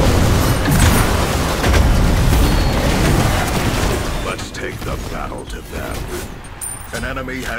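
Game characters' weapons clash with sharp impacts.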